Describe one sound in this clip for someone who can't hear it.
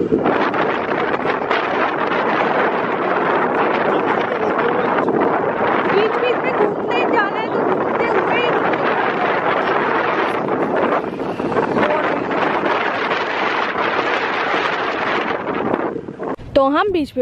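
Wind rushes loudly past a moving motorbike.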